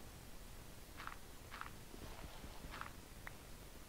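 Dirt crunches softly as blocks are dug out.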